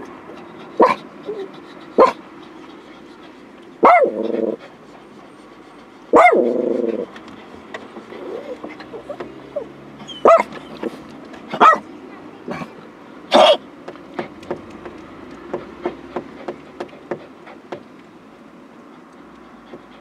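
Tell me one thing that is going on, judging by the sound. Cars drive past at a low speed nearby.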